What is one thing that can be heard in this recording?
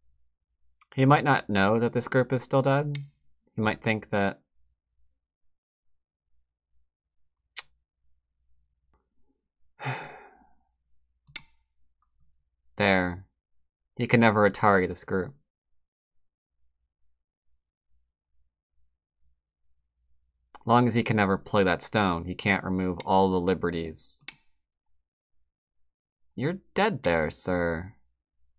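A man talks calmly and close to a microphone, in bursts with pauses.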